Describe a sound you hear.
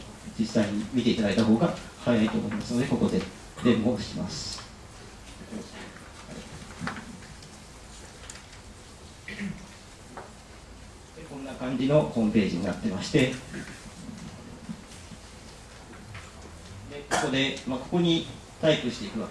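A man speaks calmly into a microphone, in bursts with pauses.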